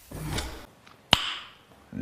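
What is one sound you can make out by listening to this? A middle-aged man close by makes a short sound with pursed lips.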